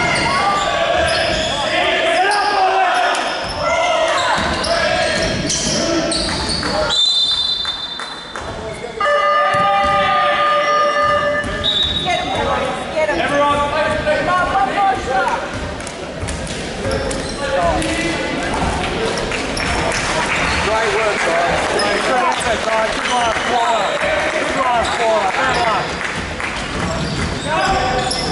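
Players and spectators shout and chatter in a large echoing hall.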